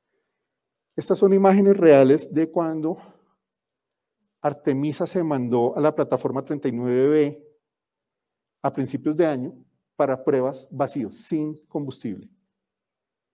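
A man speaks calmly through a microphone to an audience.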